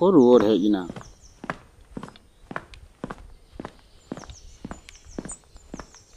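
Footsteps walk steadily on the ground.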